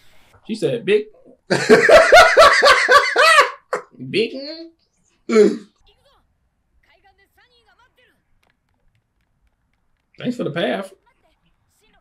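A young man talks animatedly close to a microphone.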